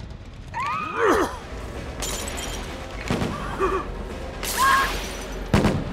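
A game character cries out in high, wavering screams.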